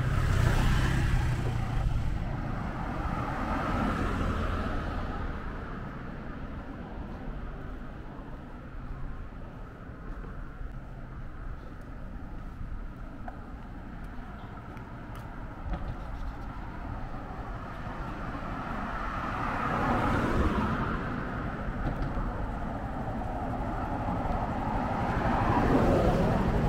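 A car drives past on the road, rising and fading.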